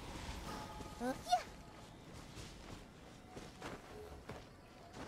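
Light footsteps patter through grass.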